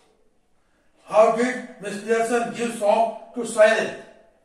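An elderly man speaks clearly and steadily through a headset microphone, as if teaching.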